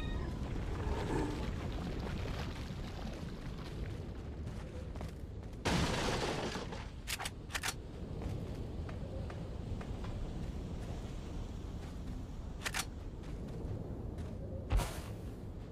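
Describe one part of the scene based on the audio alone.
Footsteps crunch on stone and gravel.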